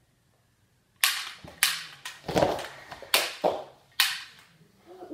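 A toy gun clicks and snaps as it fires.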